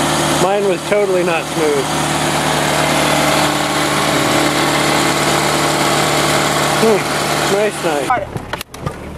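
A car engine idles steadily up close.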